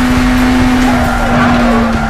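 Tyres screech as a car takes a sharp turn.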